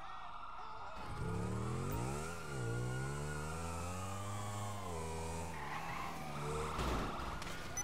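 A motorcycle engine revs and roars.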